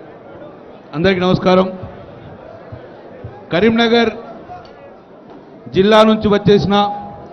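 A man speaks loudly and with emphasis into a microphone over a loudspeaker, with short pauses between phrases.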